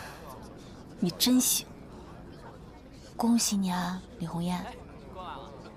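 A young woman speaks softly and sweetly up close.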